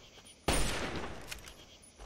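A shotgun fires with a loud blast.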